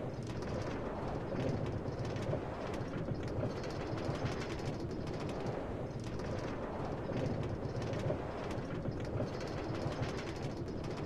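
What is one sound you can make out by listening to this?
A cart rolls and rattles steadily along metal rails.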